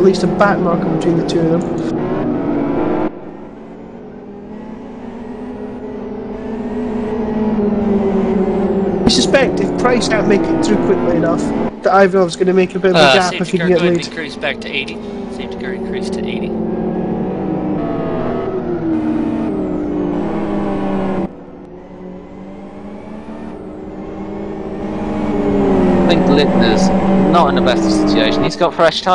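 Several racing car engines drone and whine together, rising and falling in pitch as they pass.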